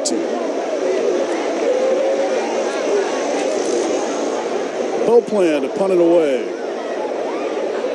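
A large crowd murmurs and cheers steadily outdoors.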